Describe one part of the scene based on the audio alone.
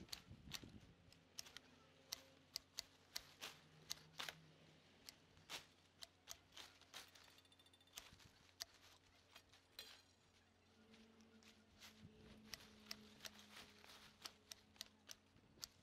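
Leaves rustle as vines are pulled and shaken.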